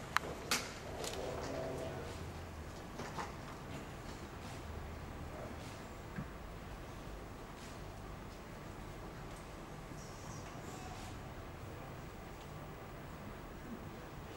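A dancer's shoes tap and knock on a wooden stage.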